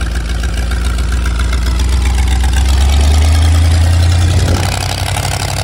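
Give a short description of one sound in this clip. An engine revs up briefly and settles back.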